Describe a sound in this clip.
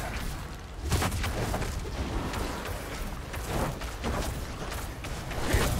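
Fiery blasts whoosh and crackle in a game.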